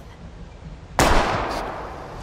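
A gunshot cracks loudly.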